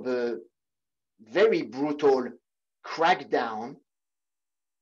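A young man speaks calmly into a microphone, heard close.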